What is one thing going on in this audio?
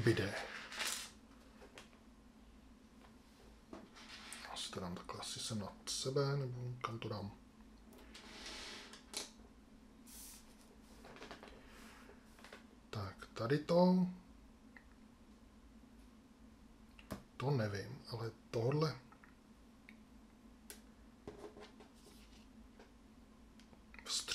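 Cards slide and tap on a table.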